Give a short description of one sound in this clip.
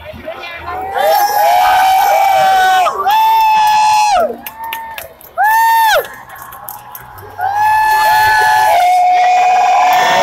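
A crowd cheers and whoops loudly close by.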